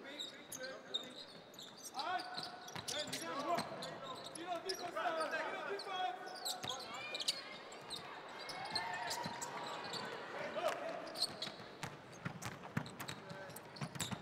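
Sneakers squeak on a hardwood court in a large echoing arena.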